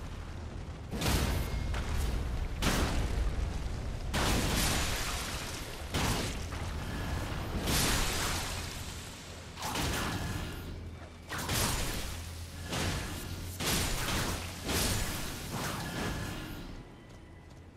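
Heavy blows and crashes boom again and again.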